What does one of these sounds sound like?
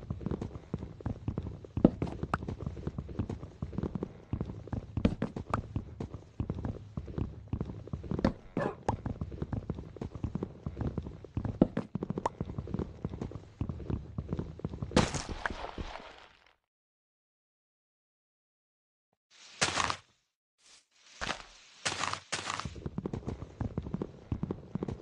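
Blocks of wood are chopped with repeated quick thuds and cracks.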